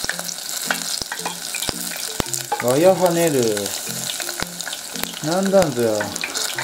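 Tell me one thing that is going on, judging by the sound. Chopsticks click against the rim of a metal pot.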